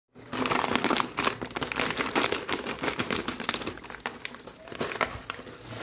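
A plastic snack bag crinkles and rustles loudly.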